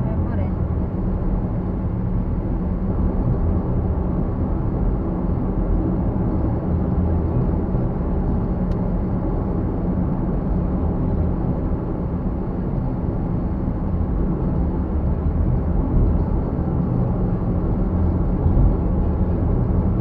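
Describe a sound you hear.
A car's engine hums steadily, heard from inside the cabin.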